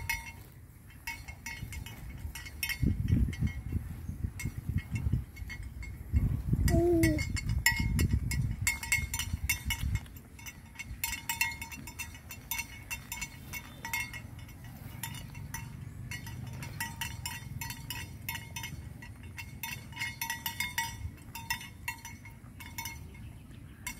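Water buffalo tear and munch grass close by.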